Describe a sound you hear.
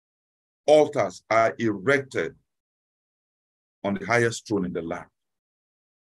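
A man speaks calmly into a microphone over an online call, pausing between phrases.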